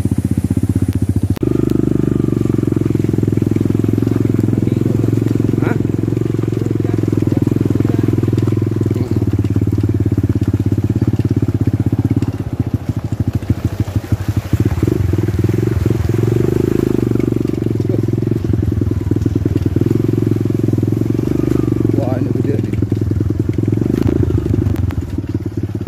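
Tyres crunch and rattle over a rough, muddy road.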